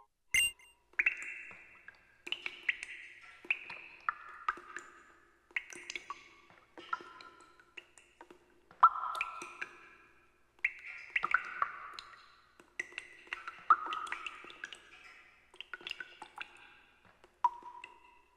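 Soft footsteps tap steadily on stone.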